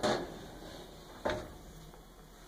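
A metal lid knocks and clanks a couple of times.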